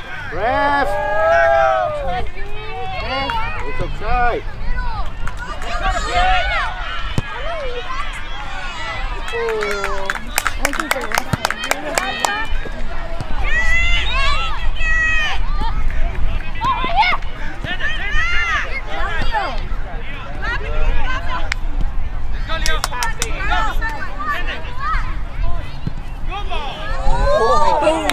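Young players call out to each other on a field.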